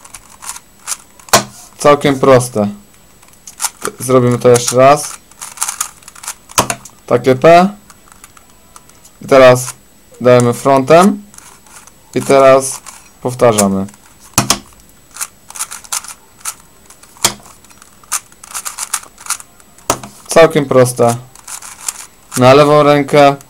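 A plastic puzzle cube clicks and rattles as its layers are turned by hand.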